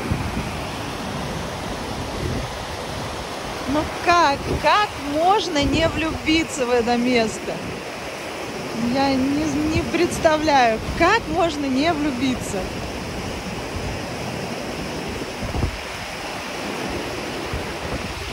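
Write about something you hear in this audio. A fast mountain river rushes and splashes over rocks.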